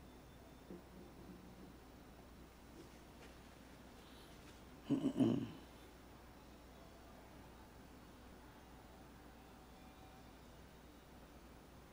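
A paintbrush brushes softly against canvas.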